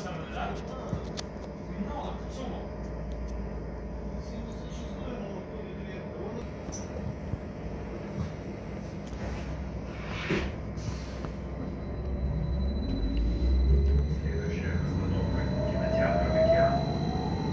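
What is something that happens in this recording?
A bus interior rattles and clatters over the road.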